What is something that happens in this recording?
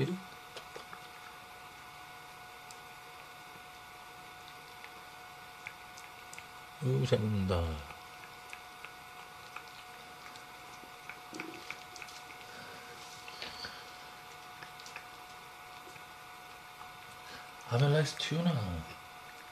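A cat laps and chews wet food.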